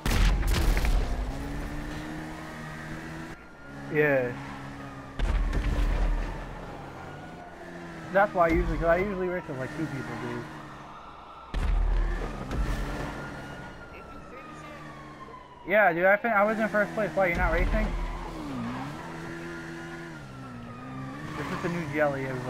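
A motorcycle engine revs and roars as it speeds along.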